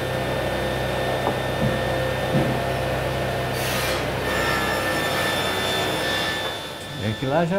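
A loader's diesel engine rumbles steadily nearby.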